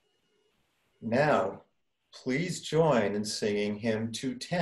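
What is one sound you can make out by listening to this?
An older man speaks calmly into a microphone, heard as if over an online call.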